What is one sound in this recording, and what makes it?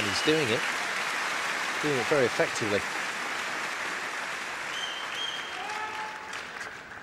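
A crowd cheers and applauds in a large hall.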